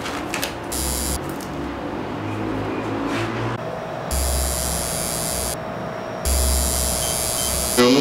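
A tattoo machine buzzes steadily.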